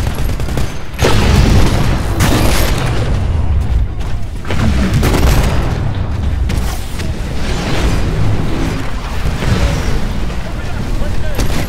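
A big gun fires loud rapid bursts with booming blasts.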